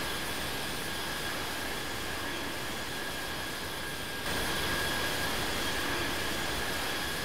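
Jet engines roar with a steady high whine.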